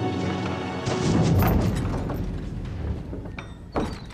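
Heavy wooden doors creak open.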